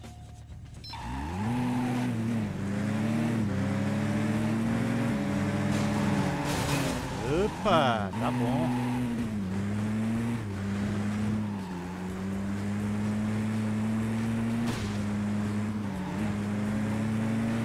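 A racing car engine roars and revs up and down.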